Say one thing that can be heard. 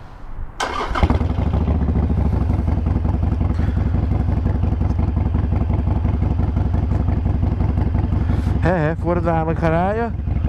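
A motorcycle engine idles with a deep, steady rumble.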